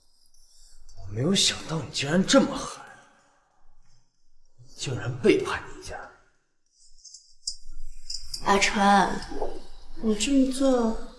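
A young man speaks tensely and reproachfully, close by.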